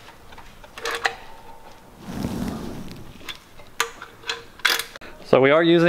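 A metal tool clicks and scrapes under a car.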